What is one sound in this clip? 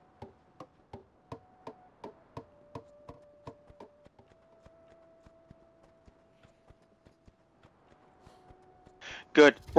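A horse's hooves clop at a steady trot.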